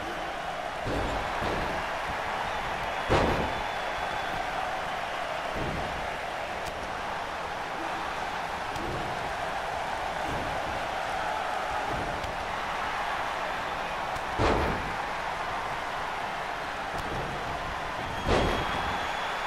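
Wrestlers' bodies thud heavily onto a ring mat.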